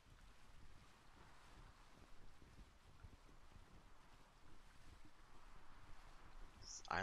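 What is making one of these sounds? Waves wash against a sailing ship's hull.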